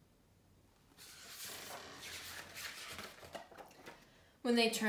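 Book pages rustle and flip.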